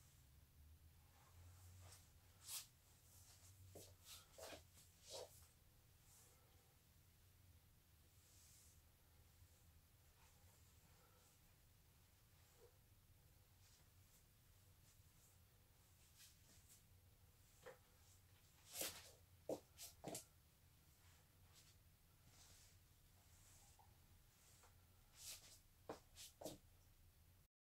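Clothing rustles as a person pulls on a jersey.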